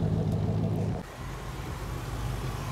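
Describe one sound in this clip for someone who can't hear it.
A classic car engine purrs quietly as the car drives past.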